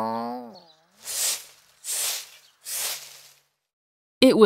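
A rake scratches through dry leaves in short strokes.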